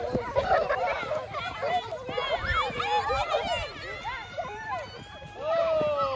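Young girls shout and squeal excitedly nearby, outdoors.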